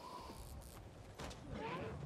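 A magic blast bursts with a crackle.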